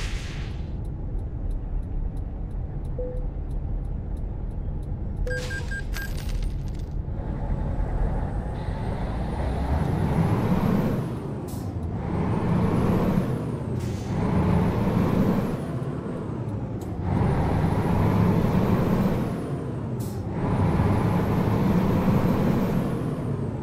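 A truck engine rumbles and revs up repeatedly through the gears.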